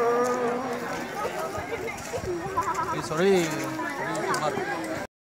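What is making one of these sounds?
People talk nearby in a crowd outdoors.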